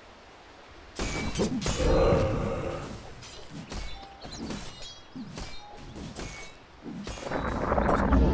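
Game spells and weapon hits crackle and clash in a fight.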